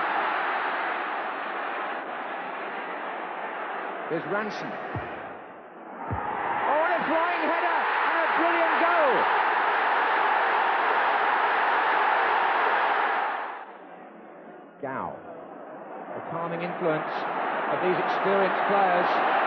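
A large stadium crowd roars loudly, swelling into a loud cheer and then dying down.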